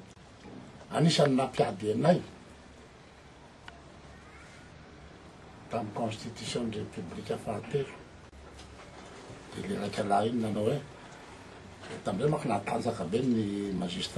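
An elderly man speaks with animation into microphones close by.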